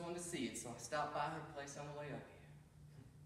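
A man speaks calmly in an echoing hall.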